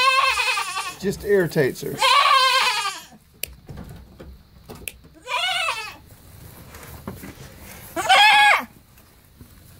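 A goat bleats loudly and repeatedly close by.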